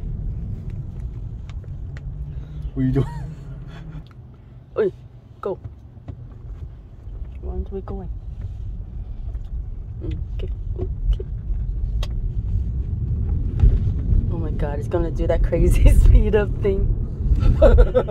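A car hums and rumbles steadily as it drives along the road.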